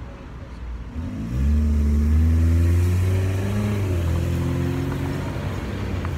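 A vehicle engine rumbles loudly close by.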